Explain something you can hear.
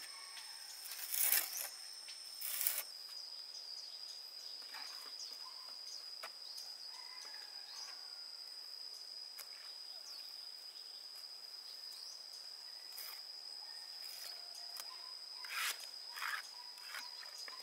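A trowel scrapes and smears wet mud.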